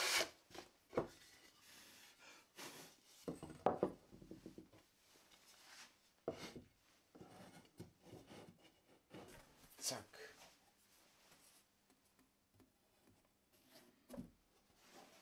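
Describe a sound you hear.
Wooden boards knock down onto a wooden workbench.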